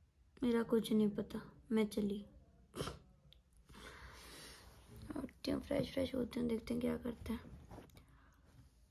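A young woman speaks close up in a drowsy, sleepy voice.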